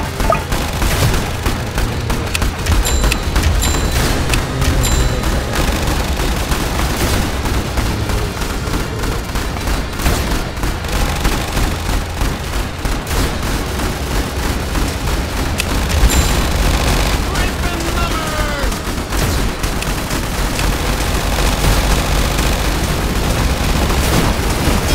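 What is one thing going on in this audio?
Gunfire and explosions crackle and boom nonstop in a game battle.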